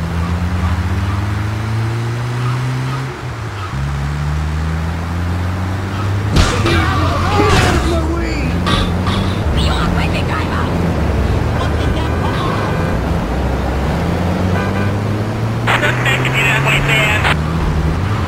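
A van engine revs and hums as it drives.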